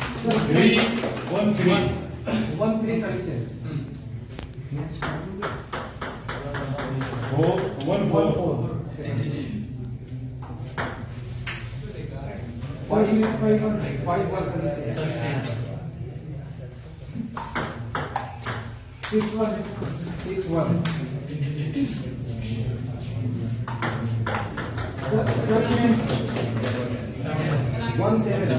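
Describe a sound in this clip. A table tennis ball clicks back and forth in quick rallies.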